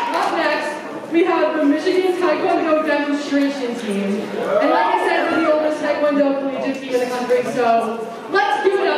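A young woman speaks calmly into a microphone, heard over loudspeakers in a large hall.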